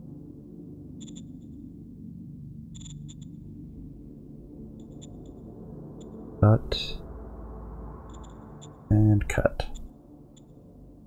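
Soft interface clicks sound now and then.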